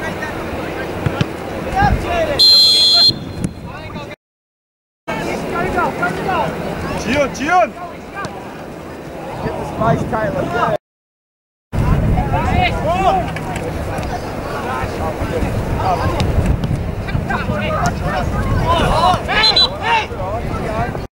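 Young players call out and shout to each other across an open field.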